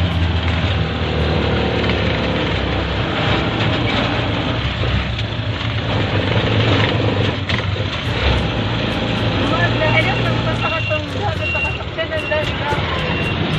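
Tyres rumble over a rough paved road.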